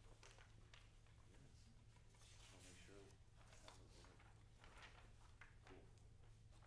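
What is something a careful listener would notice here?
A young man talks to a group.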